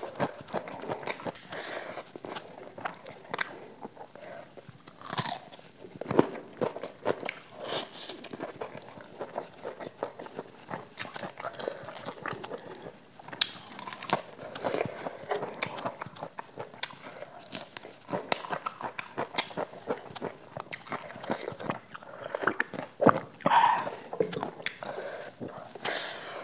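A young woman chews and smacks her lips loudly into a close microphone.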